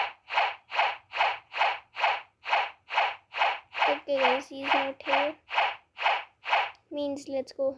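Sword swings whoosh in a quick, steady rhythm.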